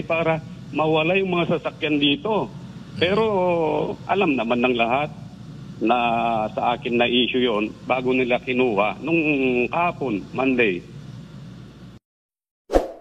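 A middle-aged man speaks calmly over a phone line.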